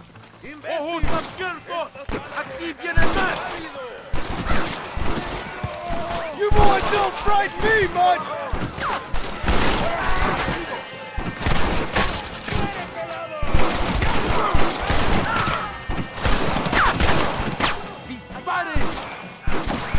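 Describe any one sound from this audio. Gunshots crack repeatedly outdoors.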